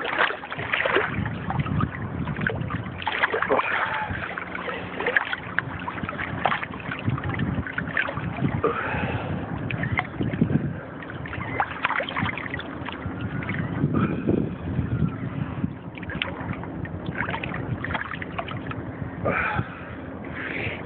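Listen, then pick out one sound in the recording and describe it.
Water sloshes and splashes close by in choppy waves.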